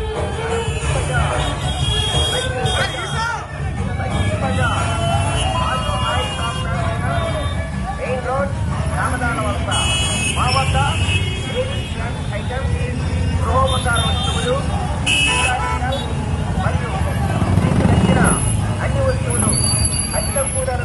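Many motorcycle engines rumble steadily as a large procession rides slowly past.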